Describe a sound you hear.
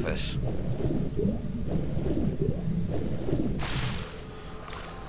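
Water gurgles and bubbles as a swimmer moves underwater.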